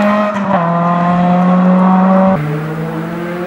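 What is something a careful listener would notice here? A rally car engine roars loudly at high revs as the car speeds away.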